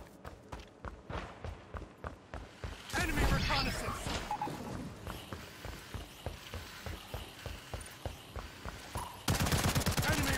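Footsteps thud quickly and steadily on a hard floor.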